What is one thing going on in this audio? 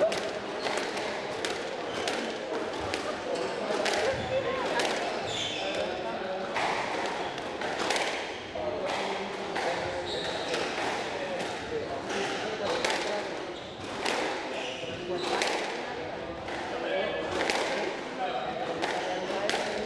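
A squash ball smacks sharply against the walls again and again, echoing in a hard court.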